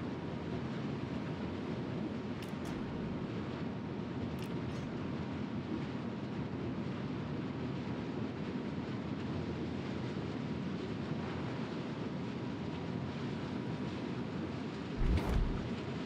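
A ship's engine rumbles steadily as the hull cuts through water.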